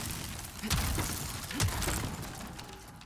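Wooden planks smash and splinter with heavy crashes.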